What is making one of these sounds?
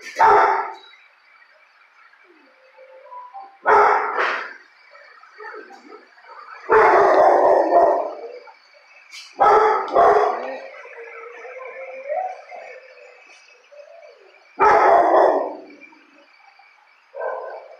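A dog barks loudly close by, in short bursts.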